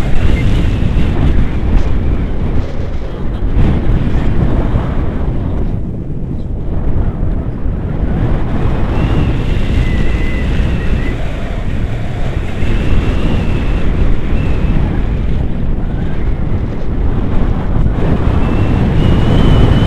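A man speaks close by, over the wind.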